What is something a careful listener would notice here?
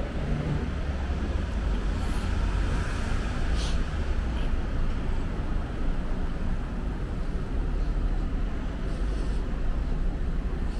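Traffic hums steadily along a city street outdoors.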